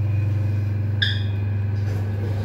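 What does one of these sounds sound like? An elevator chime dings once.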